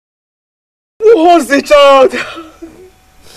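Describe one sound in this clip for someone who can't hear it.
A young man wails and cries out in tears.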